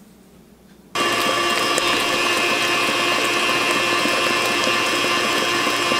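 A stand mixer whirs steadily as it beats batter.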